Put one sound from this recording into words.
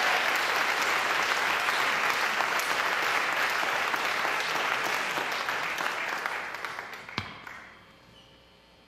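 A band plays loud electric guitars, then fades out.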